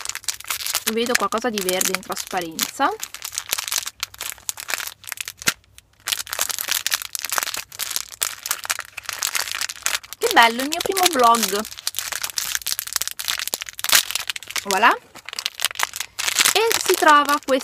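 A plastic wrapper crinkles and rustles in someone's hands.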